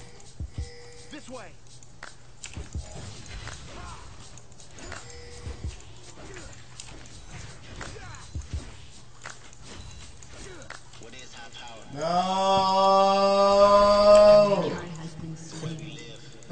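A young woman talks quietly into a microphone.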